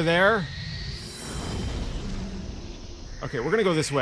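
A magical blast whooshes and hisses.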